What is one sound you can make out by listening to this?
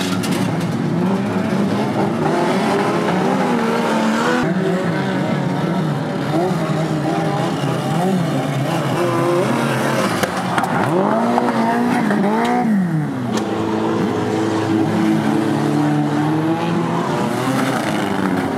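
Car engines roar and rev loudly.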